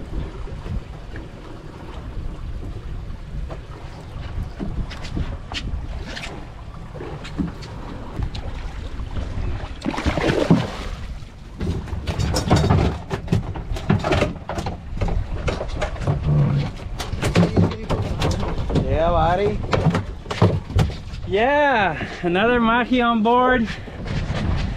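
Wind blusters outdoors on open water.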